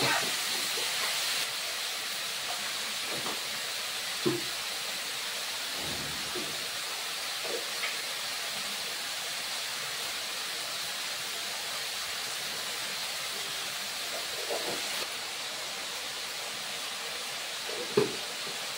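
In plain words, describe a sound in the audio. Utensils clink and clatter now and then.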